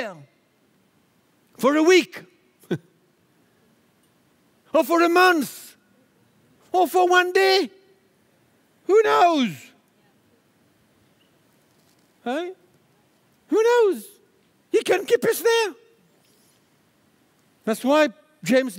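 An older man speaks with animation through a headset microphone, in short bursts with pauses.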